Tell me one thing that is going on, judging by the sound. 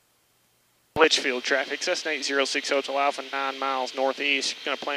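A young man speaks through a headset microphone, close and clear.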